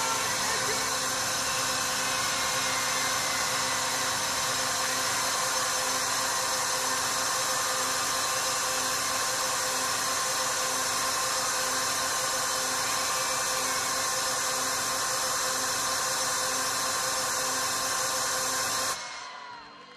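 Loud electronic music plays through big loudspeakers in a huge open space.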